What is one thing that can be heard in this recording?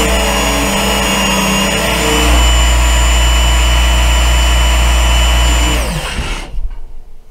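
An electric sharpener whirs loudly and then winds down.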